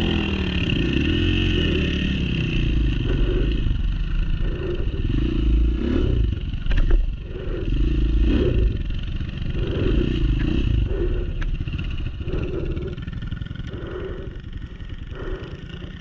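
A second dirt bike revs and rides away.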